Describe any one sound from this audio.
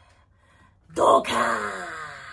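A young woman shouts with excitement close by.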